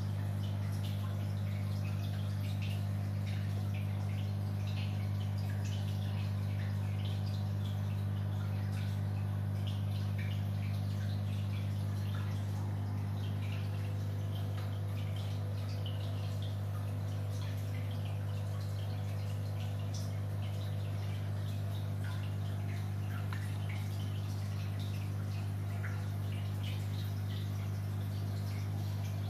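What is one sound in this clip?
An aquarium filter hums steadily and low.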